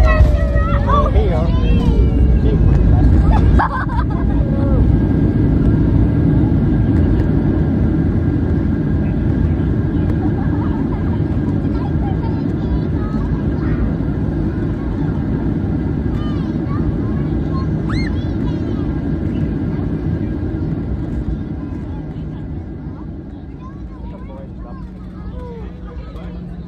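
A jet engine roars loudly and steadily, then slowly quietens.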